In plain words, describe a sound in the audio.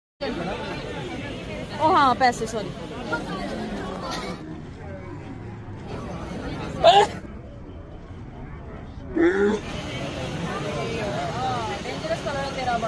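A crowd chatters and murmurs.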